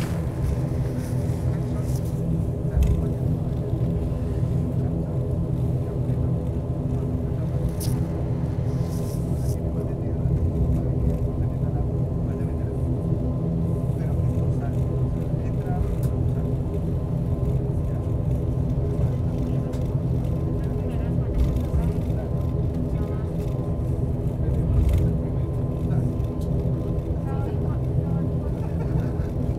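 Tyres rumble and thump over the runway surface.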